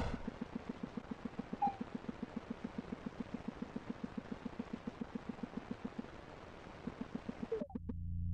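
Rapid electronic blaster shots fire in a quick, steady stream.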